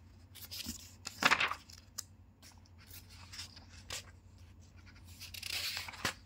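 Paper pages rustle and flap as a book's pages are turned.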